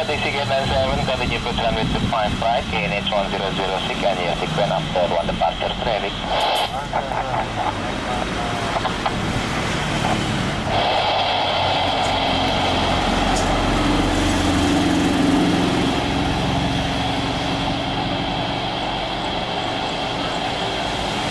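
A jet airliner's engines whine as it comes in to land.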